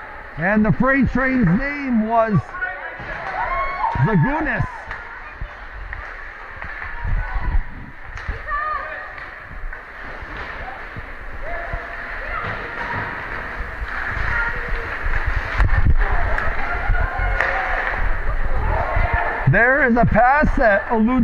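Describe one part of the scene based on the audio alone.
Spectators shout and cheer close by in a large echoing rink.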